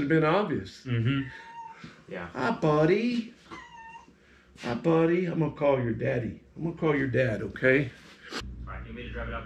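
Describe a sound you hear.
An older man talks with animation close by.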